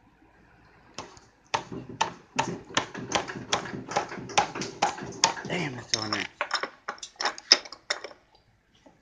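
A metal pipe wrench clanks and knocks repeatedly up close.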